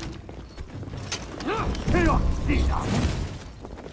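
Steel blades clash and ring in a fight.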